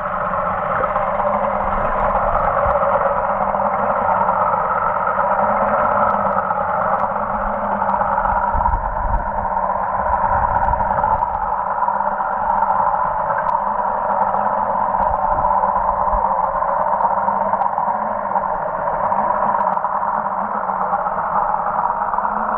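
Water swirls and rumbles, muffled underwater.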